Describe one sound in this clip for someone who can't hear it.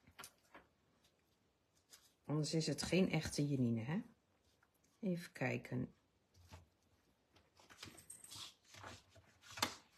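Paper cards slide and tap on a table.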